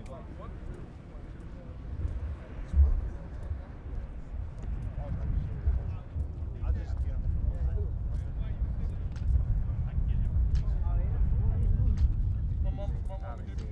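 Wind rumbles loudly against a microphone outdoors.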